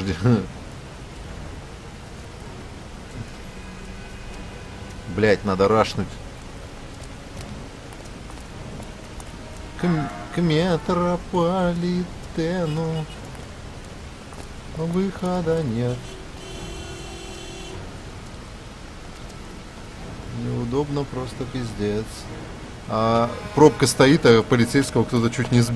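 Rain falls steadily all around.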